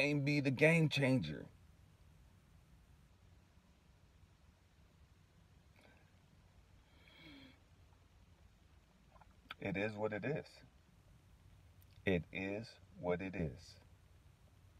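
A man speaks slowly and calmly, close by, in short bursts with long pauses.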